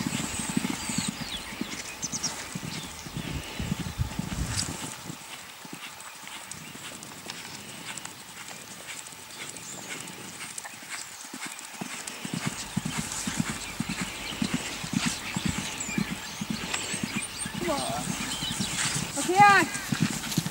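A horse's hooves beat a quick, even rhythm on soft dirt.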